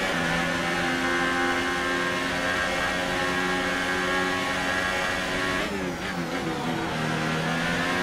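A racing car engine screams at high revs.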